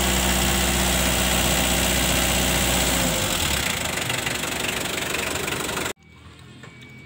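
A van engine idles.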